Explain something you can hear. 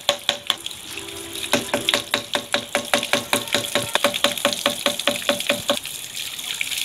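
A hand pump squeaks and clanks in a quick, steady rhythm.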